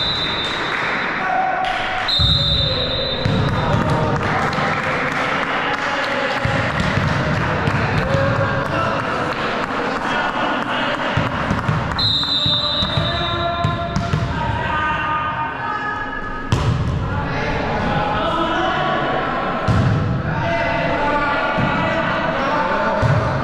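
Young men shout and call out to each other across an echoing gym.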